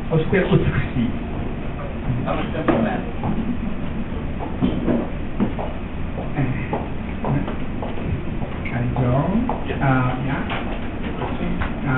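A crowd of people chatters in the background.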